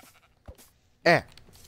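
A sheep bleats loudly.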